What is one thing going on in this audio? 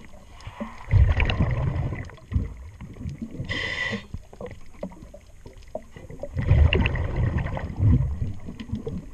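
Exhaled bubbles rumble and gurgle loudly close by.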